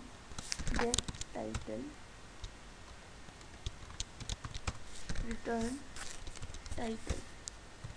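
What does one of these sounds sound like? Keys clack on a computer keyboard in quick bursts.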